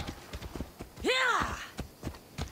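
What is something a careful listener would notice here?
A horse whinnies loudly.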